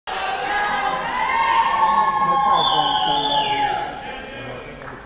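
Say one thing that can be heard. A choir sings a held chord in a large echoing hall, heard from the audience.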